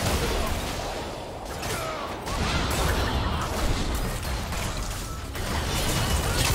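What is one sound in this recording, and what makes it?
Spell blasts and weapon hits from a video game battle clash in quick bursts.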